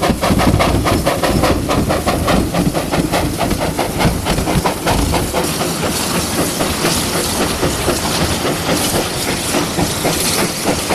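A steam locomotive chuffs loudly and rhythmically as it passes close by.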